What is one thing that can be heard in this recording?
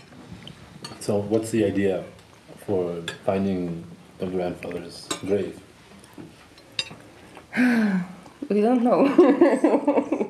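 Several adult men talk with one another close by.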